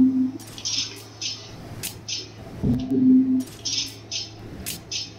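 Short bright menu chimes sound in quick succession.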